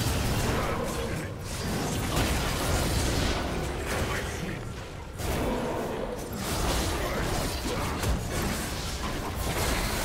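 Video game combat sounds burst and crackle with spell blasts and hits.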